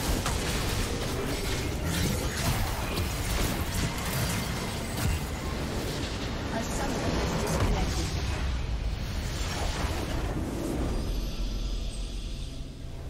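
Game spell effects crackle, whoosh and explode in a busy battle.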